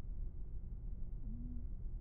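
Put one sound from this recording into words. A young woman speaks tensely up close.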